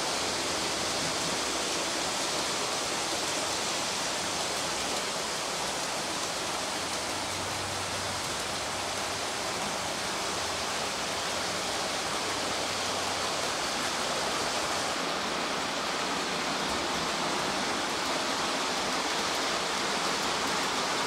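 A model train rumbles softly along its track.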